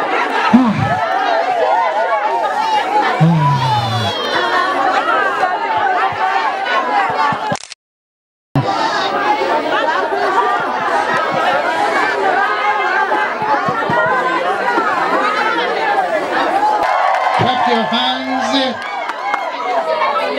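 A crowd of men and women chatters loudly nearby.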